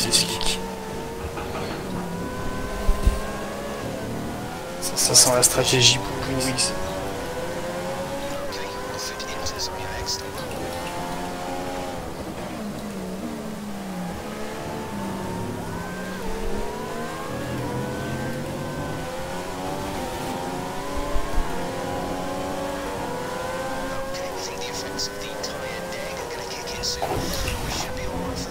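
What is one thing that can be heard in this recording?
Racing car engines whine, rising and falling in pitch as they shift gears.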